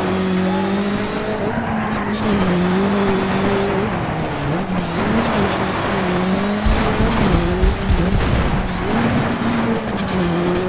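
A rally car engine revs hard, rising and dropping as gears shift.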